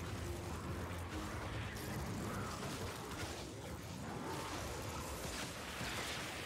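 Gunshots ring out in a video game.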